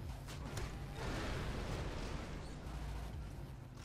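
A loud explosion booms and then rumbles away.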